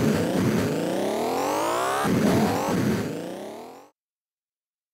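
A racing game's electronic car engine whines, rising in pitch again and again, then fades out.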